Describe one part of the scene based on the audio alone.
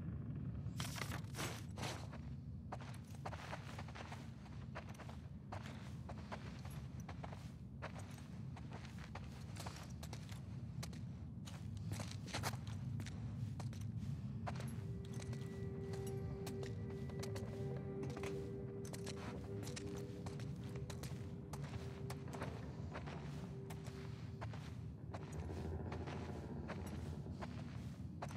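Footsteps tread slowly across a wooden floor.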